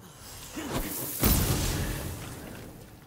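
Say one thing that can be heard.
A burst of flame roars and crackles.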